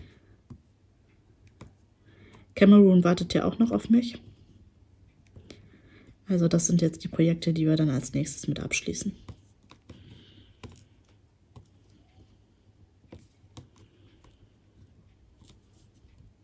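A small tool taps softly, placing tiny gems one by one.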